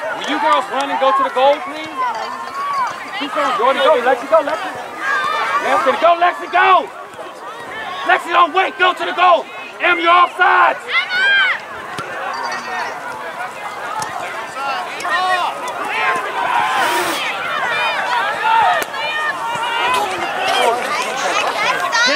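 Adults and children shout and cheer outdoors from the sidelines.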